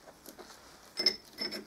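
A metal bearing clinks as it is picked up.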